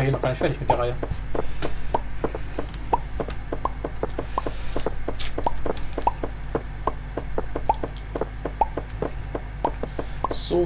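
Quick, even knocks of wood being chopped repeat.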